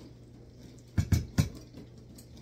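A glass pitcher knocks down onto a hard counter.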